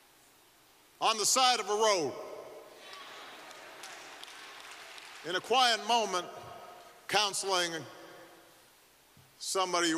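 A middle-aged man speaks slowly and solemnly into a microphone in a large echoing hall.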